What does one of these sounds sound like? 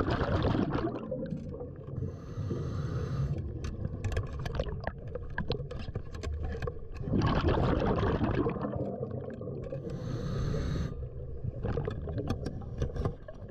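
Gloved hands rub and scrape against a wooden shaft underwater.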